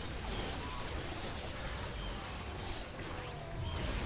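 Spells and weapons zap and crackle in a game battle.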